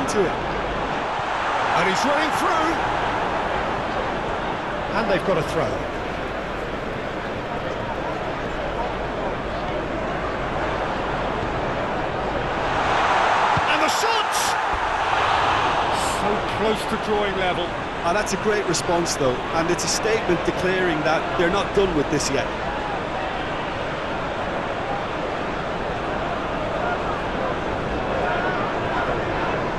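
A large stadium crowd roars steadily and swells loudly at a near miss.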